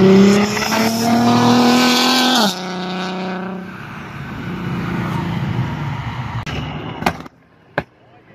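A sports car engine roars loudly, rising in pitch as it accelerates past, then drops at a gear change and fades away.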